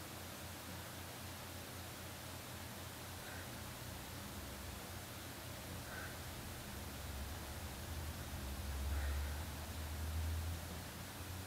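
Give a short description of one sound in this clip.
A small screwdriver clicks softly as it turns tiny screws.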